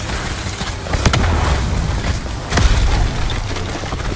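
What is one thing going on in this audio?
Energy blasts explode with deep booms.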